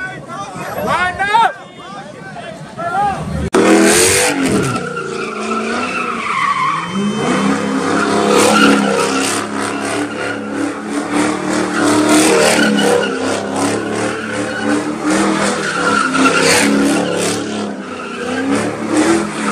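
A crowd cheers and shouts around the car.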